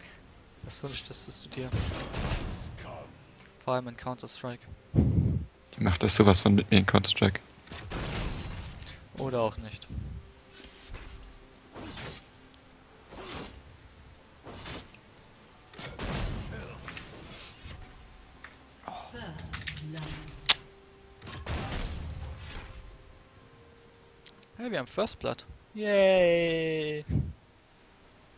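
Game spell effects whoosh and crackle in bursts during a fight.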